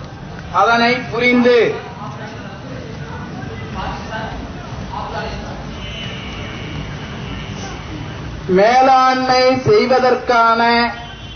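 A man speaks into a microphone in loud bursts, heard through a loudspeaker outdoors.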